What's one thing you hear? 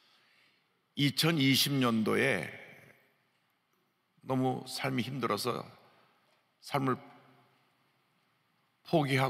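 A middle-aged man speaks slowly and forcefully into a microphone, in a reverberant hall.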